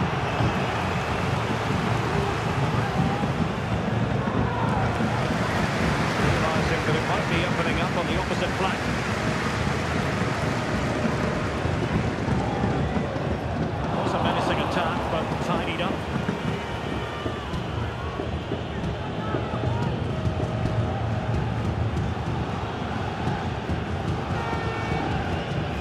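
A large crowd cheers and roars steadily in a stadium.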